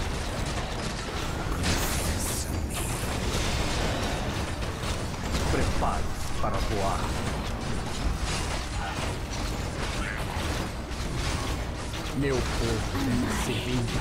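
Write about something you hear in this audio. Weapons clash and spells burst in a busy game battle.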